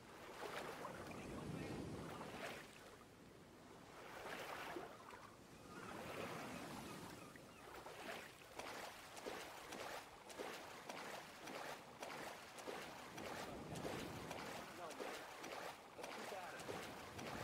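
Water splashes as a swimmer strokes through it with steady rhythm.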